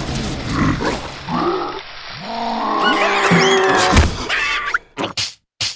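A large cartoon beetle growls loudly.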